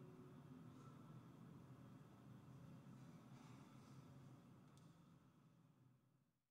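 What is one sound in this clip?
A harp plays soft plucked notes that ring and slowly fade.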